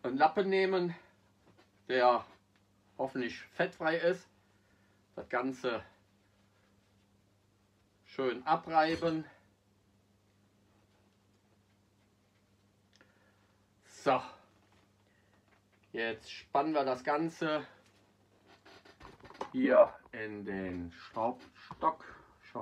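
A middle-aged man talks calmly and close by, in short bursts with pauses.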